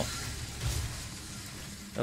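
A gun fires in bursts.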